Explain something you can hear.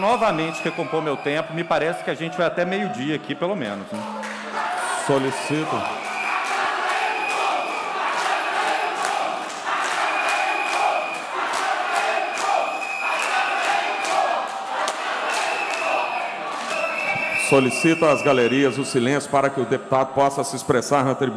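A man speaks firmly into a microphone in a large echoing hall.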